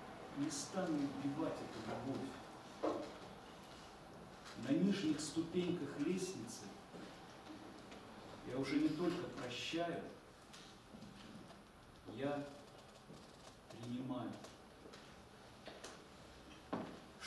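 A man talks calmly to an audience in an echoing hall.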